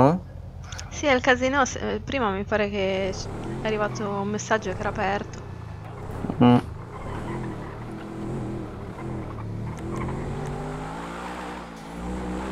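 A car engine hums and revs as the car drives off.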